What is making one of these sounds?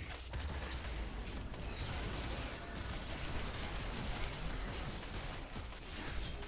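Video game fight sounds clash and crackle.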